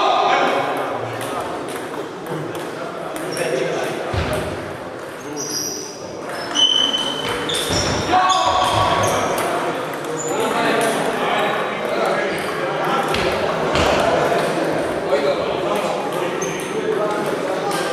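Table tennis balls click on tables and paddles in a large echoing hall.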